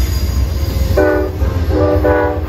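A train horn blares in two loud blasts.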